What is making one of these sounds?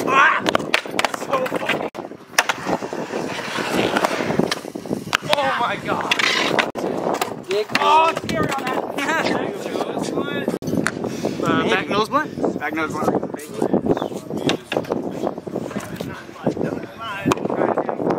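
Skateboard wheels roll and grind over concrete.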